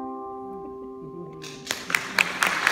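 A piano and violin hold a final chord.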